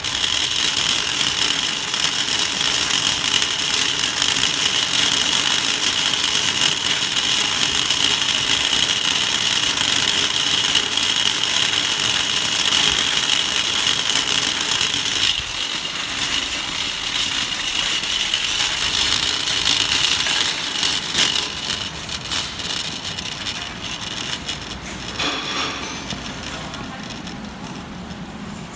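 A shopping cart rattles as it rolls over pavement.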